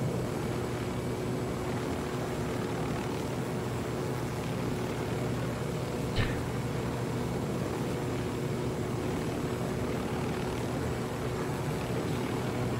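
A helicopter's rotor blades thump steadily close by.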